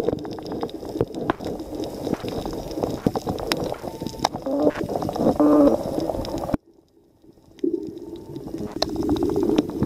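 Muffled underwater sound rumbles, with faint crackling clicks.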